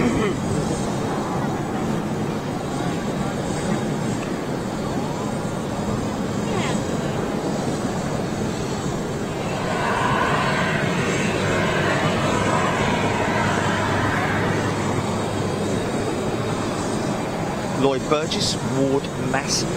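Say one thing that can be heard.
A large jet airliner's engines rumble steadily as it taxis nearby.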